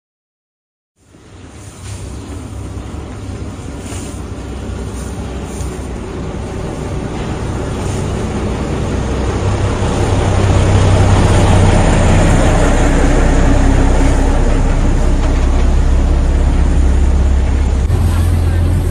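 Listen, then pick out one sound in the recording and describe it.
A heavy truck engine rumbles close by as the truck rolls slowly past.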